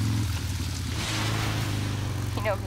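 Water splashes under a motorcycle's tyres.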